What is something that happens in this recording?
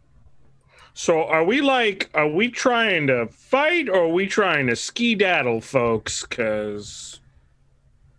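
A man talks with animation over an online call.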